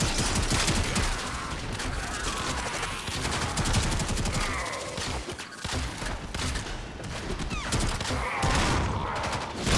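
Energy blasts crackle and boom.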